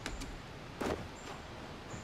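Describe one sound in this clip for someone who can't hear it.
Footsteps crunch softly in snow.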